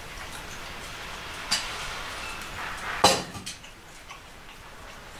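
A wood fire crackles in a small camp stove.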